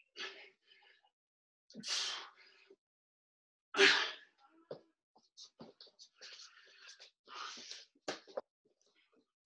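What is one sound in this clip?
A man breathes out hard and loudly with effort.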